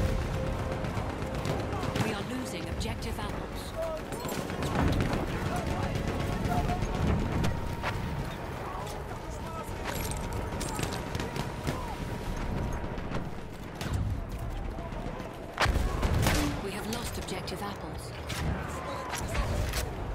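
Gunfire cracks sharply.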